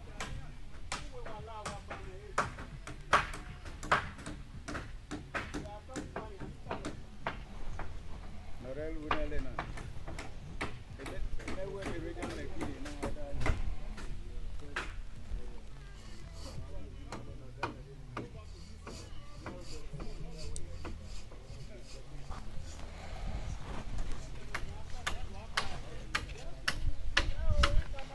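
Hammers bang sharply and repeatedly on wood.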